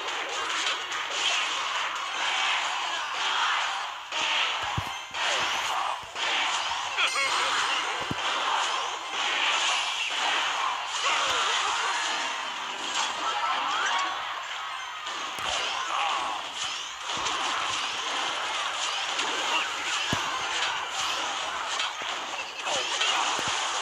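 Busy video game battle sounds clash and crackle throughout.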